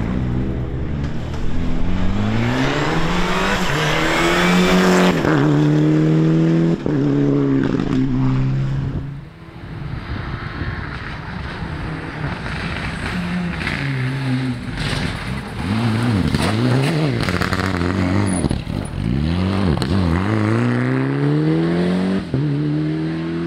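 A rally car engine roars loudly, revving up and down sharply through quick gear changes.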